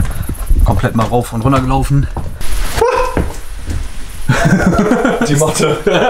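A middle-aged man talks with animation close to the microphone.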